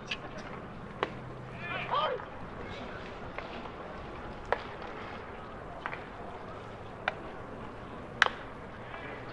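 A baseball smacks into a catcher's mitt with a sharp pop.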